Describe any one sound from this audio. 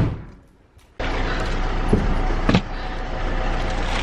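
A car rumbles steadily while driving, heard from inside.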